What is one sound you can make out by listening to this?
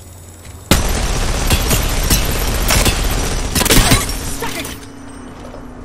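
A heavy gun fires rapid bursts at close range.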